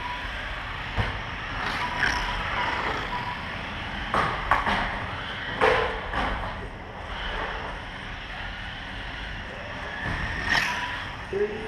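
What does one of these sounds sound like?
Toy cars knock against plastic track barriers.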